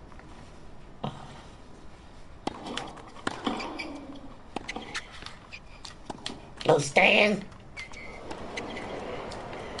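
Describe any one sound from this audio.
A tennis ball is struck with a racket and bounces on the court.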